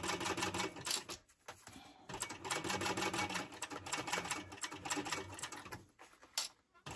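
A sewing machine stitches in quick rapid bursts.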